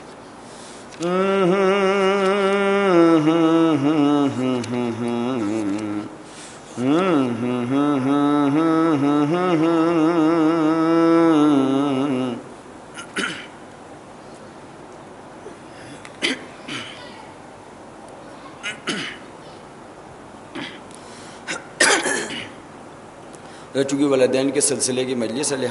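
A man sings a slow, drawn-out melody into a microphone, close and amplified.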